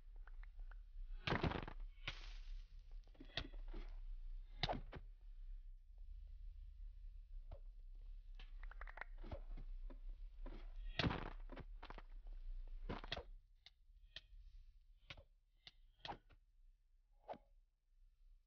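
Sword blows land with sharp, quick hits, again and again.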